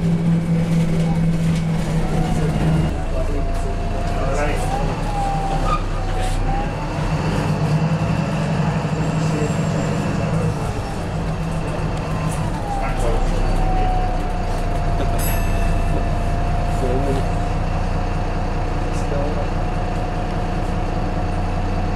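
A bus engine rumbles and whines steadily as the bus drives along.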